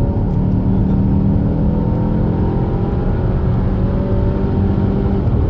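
Tyres and wind roar against a moving car.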